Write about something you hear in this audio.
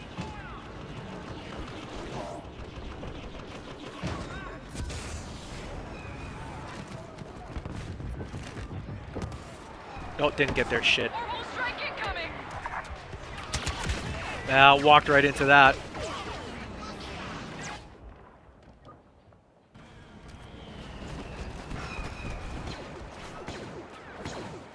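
Blaster shots fire in rapid bursts.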